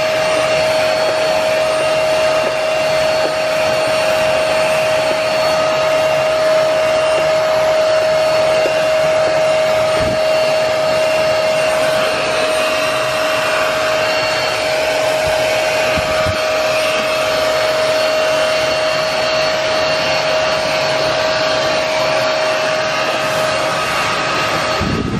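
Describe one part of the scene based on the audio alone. A carpet cleaning machine whines loudly and steadily.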